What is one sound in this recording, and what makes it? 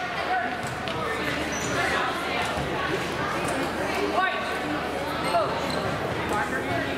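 A crowd of spectators chatters throughout a large echoing gym.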